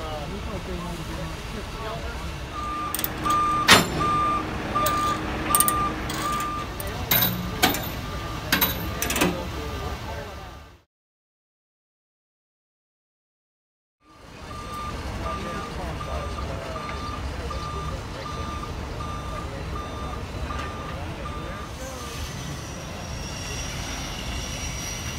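A heavy truck engine rumbles steadily outdoors.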